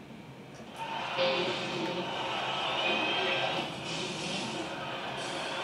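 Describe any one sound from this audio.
A rock band plays loudly with distorted electric guitars and drums.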